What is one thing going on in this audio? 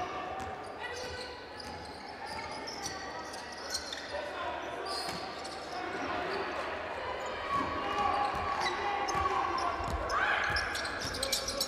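A basketball bounces as it is dribbled.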